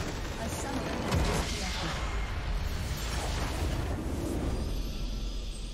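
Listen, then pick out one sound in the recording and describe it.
A video game base structure explodes with a loud burst.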